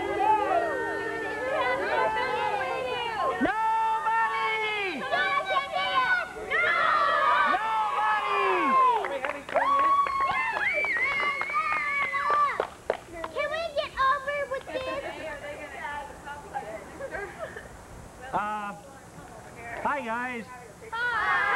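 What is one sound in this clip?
A crowd of children and adults sings together loudly.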